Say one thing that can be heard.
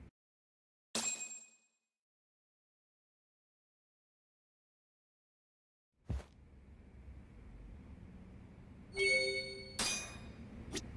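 A bright electronic chime rings out.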